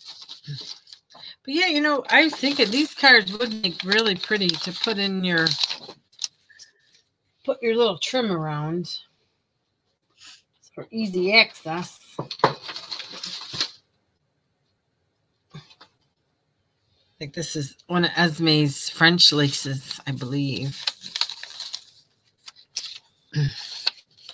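Paper rustles and crinkles in someone's hands.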